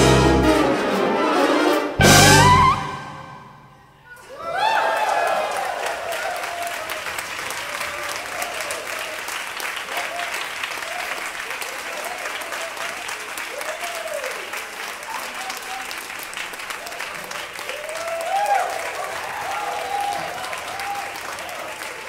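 A large wind band plays in an echoing concert hall.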